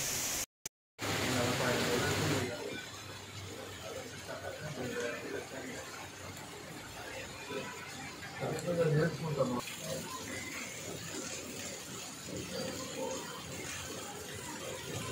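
Light rain falls softly on a street.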